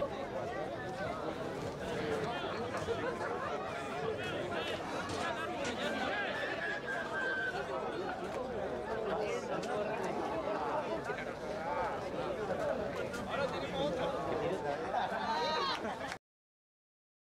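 A crowd of spectators chatters and cheers nearby.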